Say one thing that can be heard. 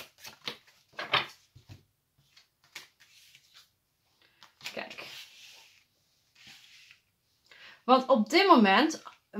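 Playing cards slide and tap onto a table.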